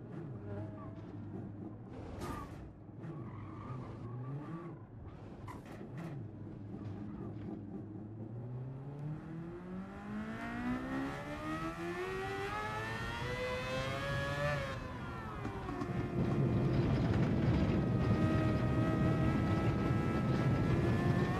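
A racing car engine revs up and down through the gears.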